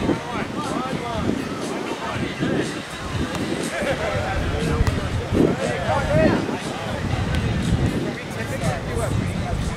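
Young people chat and call out nearby, outdoors.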